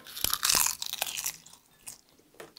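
A young boy slurps noodles noisily up close.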